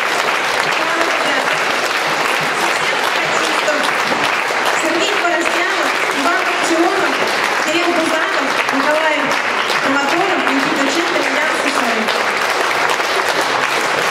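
A woman speaks into a microphone over a loudspeaker in a large hall.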